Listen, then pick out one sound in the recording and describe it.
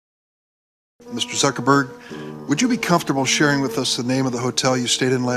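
An older man speaks formally into a microphone.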